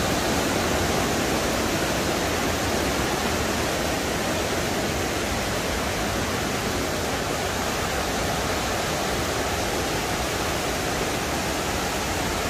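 A stream rushes steadily over rocks close by.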